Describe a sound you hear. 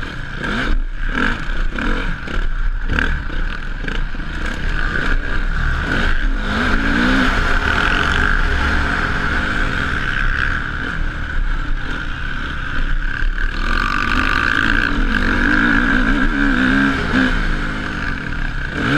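A dirt bike engine revs loudly up close, rising and falling as the rider shifts.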